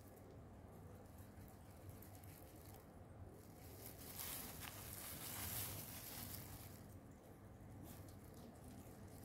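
Plastic gloves crinkle and rustle against each other.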